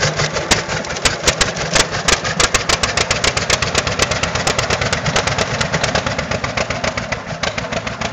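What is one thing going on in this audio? An old tractor engine idles close by with a rapid, loud chugging.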